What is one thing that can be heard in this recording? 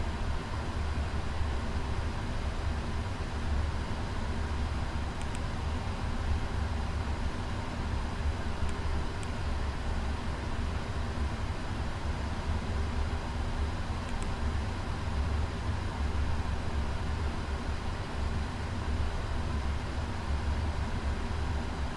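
A low, steady engine drone hums throughout an airliner cockpit.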